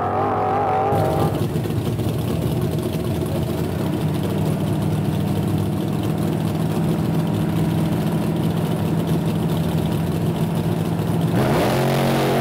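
A car engine idles with a deep, steady rumble close by.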